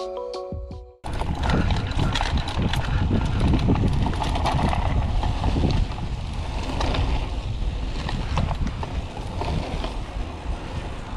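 Bicycle tyres roll and bump over grass.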